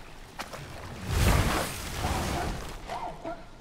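A wooden boat scrapes and grinds onto a sandy shore.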